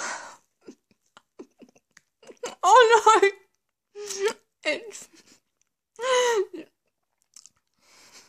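A woman chews a biscuit.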